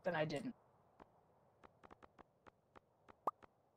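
Soft game menu blips tick one after another.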